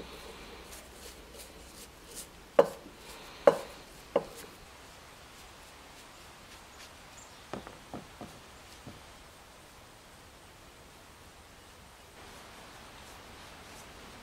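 A paintbrush taps and scrapes against metal and wood.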